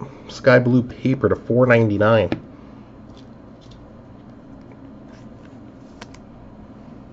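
Cardboard cards rustle and slide as hands shuffle through them.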